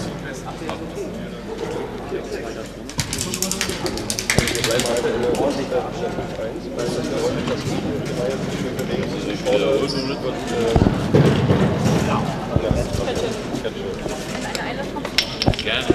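A man talks with animation to a huddle of players in an echoing sports hall.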